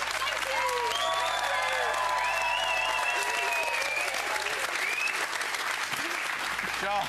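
A studio audience claps and applauds loudly.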